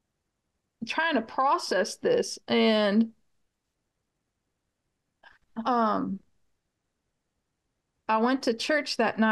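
A middle-aged woman speaks with animation over an online call, with pauses.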